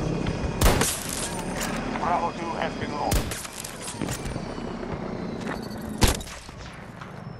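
Sharp rifle shots crack loudly, each followed by a short echo.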